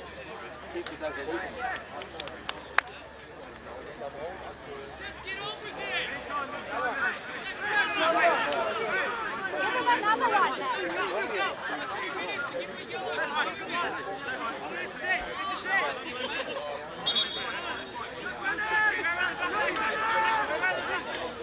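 Young men call out and talk across an open outdoor field.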